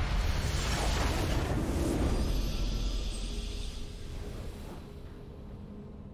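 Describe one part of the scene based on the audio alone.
A triumphant game fanfare swells and then fades.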